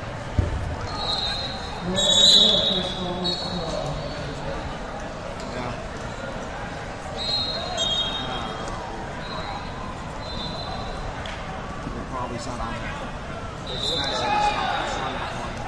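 Shoes squeak on a wrestling mat.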